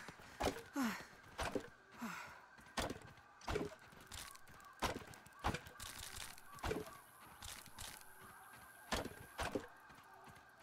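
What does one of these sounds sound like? Sharp chopping thuds strike plant stalks in quick succession.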